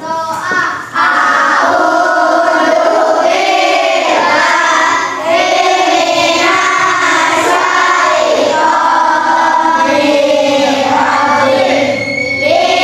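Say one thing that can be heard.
Children sing together in a room.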